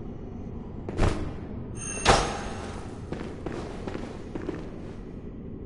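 A blade swishes and strikes with a sharp clang.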